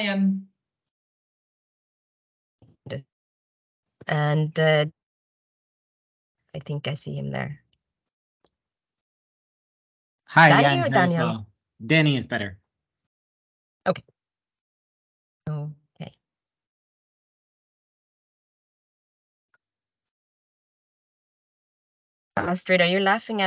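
A woman speaks calmly over an online call, in short bursts with pauses.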